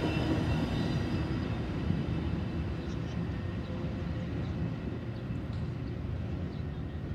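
A train rumbles past nearby and fades into the distance.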